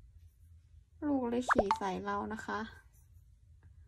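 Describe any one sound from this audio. A woman speaks with animation close by.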